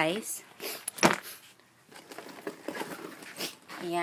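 Fabric rustles as it is handled close by.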